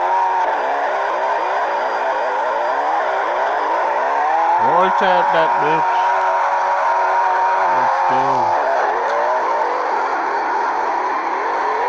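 Tyres screech as a car slides sideways.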